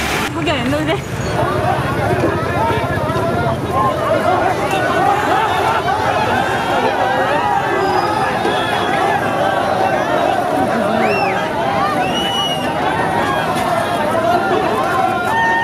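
A large crowd of men shouts and chants close by.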